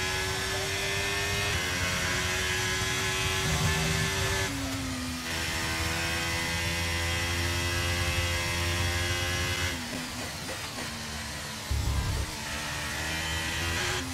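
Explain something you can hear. A racing car engine screams at high revs, dropping in pitch with each gear change and on braking.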